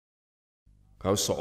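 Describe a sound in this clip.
A younger man speaks tensely, close by.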